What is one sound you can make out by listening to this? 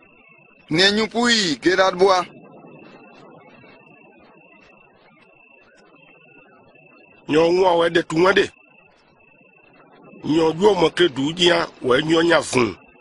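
A man speaks calmly and earnestly nearby, pausing between phrases.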